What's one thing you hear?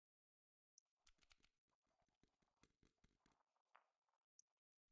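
A pestle grinds and crunches in a stone mortar.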